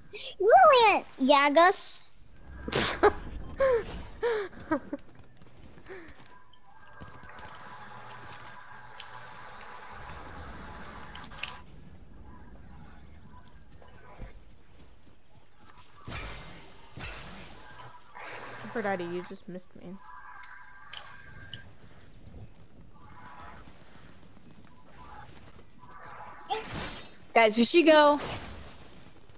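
Footsteps run quickly over grass.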